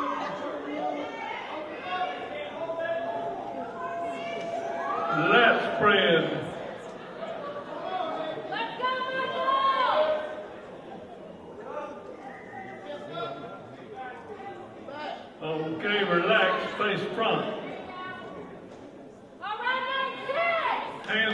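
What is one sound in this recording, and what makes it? A crowd shouts and cheers loudly in a large hall.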